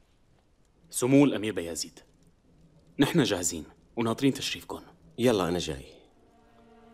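A young man speaks respectfully, a little further off.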